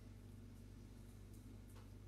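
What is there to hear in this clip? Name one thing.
A spoon scrapes at an artichoke heart.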